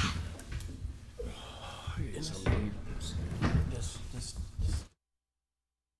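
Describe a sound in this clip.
Adults murmur and chat at a distance in a room.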